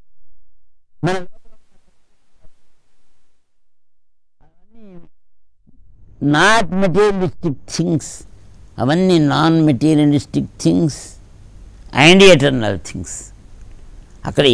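An elderly man sings with a strong voice into a close microphone.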